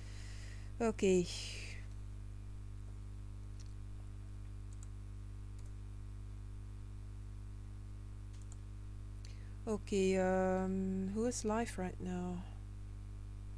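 A young woman speaks briefly and casually into a close microphone.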